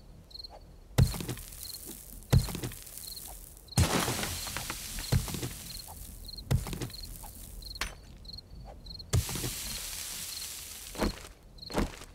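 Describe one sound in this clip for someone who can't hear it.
A stone axe strikes rock with heavy, repeated thuds.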